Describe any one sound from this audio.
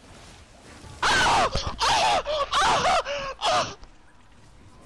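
A young man shouts loudly and excitedly into a microphone.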